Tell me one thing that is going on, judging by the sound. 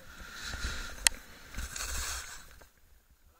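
A skier crashes into powder snow with a thud.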